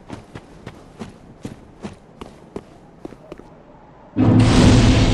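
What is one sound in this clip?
Footsteps walk at a steady pace on stone.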